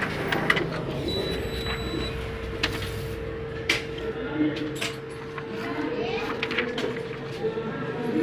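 A printer whirs steadily as it runs.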